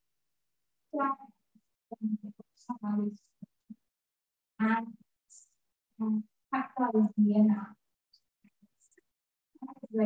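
A young woman speaks haltingly into a microphone, heard over an online call.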